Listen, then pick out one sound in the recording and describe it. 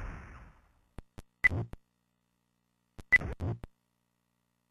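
Short game sound effects thump and chime in quick bursts.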